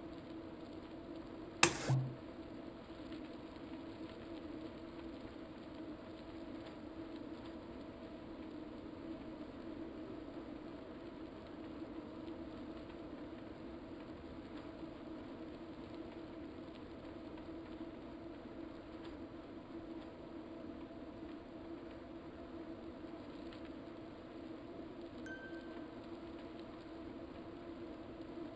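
A bicycle on an indoor trainer whirs with a steady hum.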